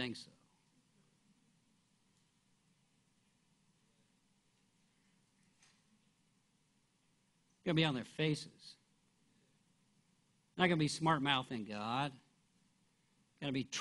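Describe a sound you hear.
A middle-aged man speaks slowly and deliberately into a microphone, with long pauses.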